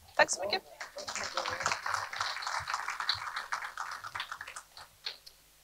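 Several people in an audience murmur and chatter.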